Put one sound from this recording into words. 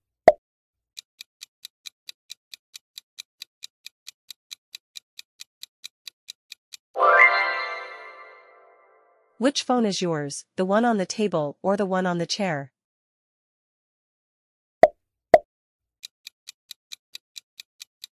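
A timer ticks quickly and steadily.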